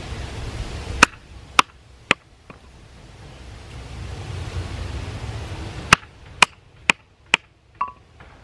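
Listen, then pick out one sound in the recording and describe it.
Wood cracks sharply as a stick is split.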